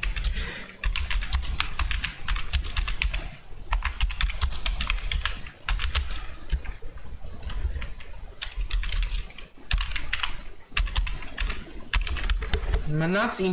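A keyboard clatters with quick typing.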